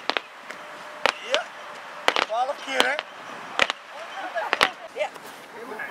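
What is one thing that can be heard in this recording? Medicine balls thud as they are caught and thrown.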